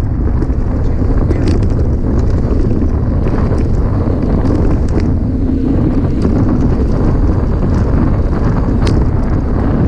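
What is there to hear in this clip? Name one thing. Wind rumbles hard against the microphone outdoors.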